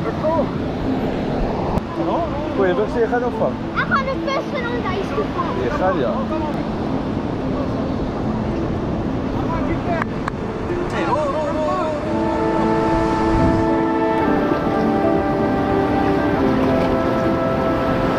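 Waves wash onto the shore.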